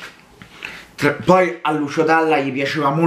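A man sings out loudly with emotion close by.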